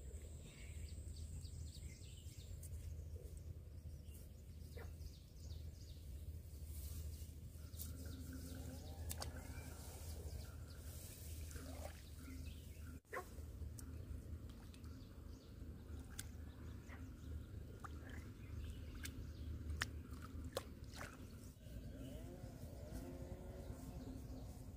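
Bare feet step on grass.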